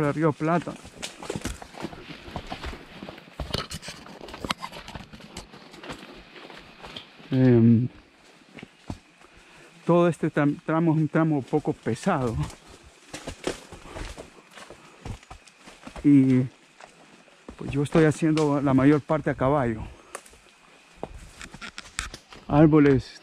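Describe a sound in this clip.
A horse's hooves thud and squelch slowly on a muddy trail.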